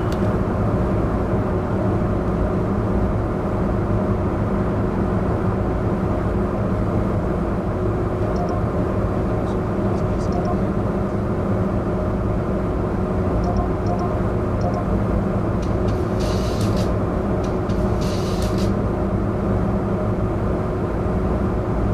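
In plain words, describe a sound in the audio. A diesel bus engine idles.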